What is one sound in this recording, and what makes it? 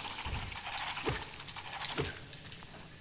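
A game sword slash strikes with a sharp impact.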